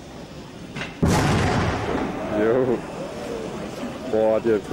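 A steam locomotive lets out a sudden loud blast of steam that slowly fades.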